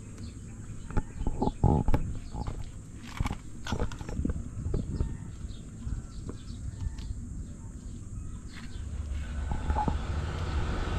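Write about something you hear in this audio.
Hands tap and rub against a boat hull.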